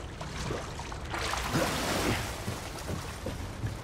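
Water splashes as someone wades.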